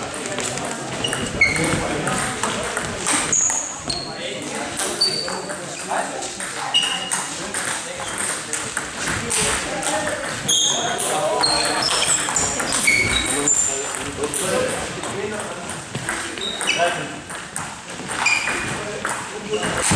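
Sports shoes squeak sharply on the hall floor.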